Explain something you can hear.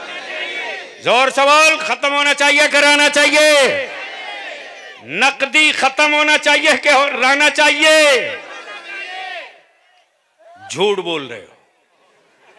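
A man chants loudly in long, drawn-out phrases through a microphone and loudspeakers.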